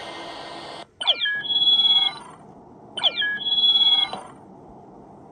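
A game plays a sweeping electronic whoosh.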